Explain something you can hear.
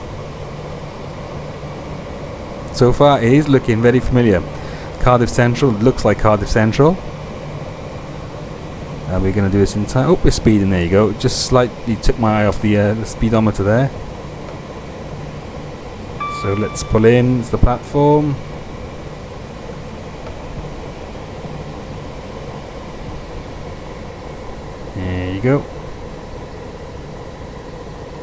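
A train engine hums steadily as the train rolls slowly along the tracks.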